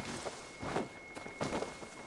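A blade slashes through the air with a sharp swish.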